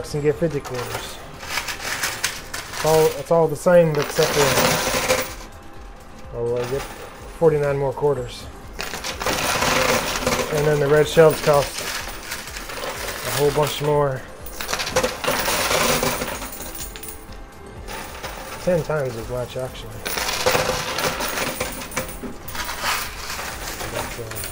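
Coins clink and slide against each other.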